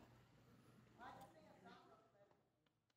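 A man speaks quietly at a distance.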